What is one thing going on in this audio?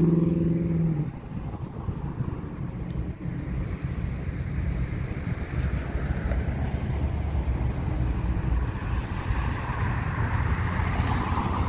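Traffic hums along a road.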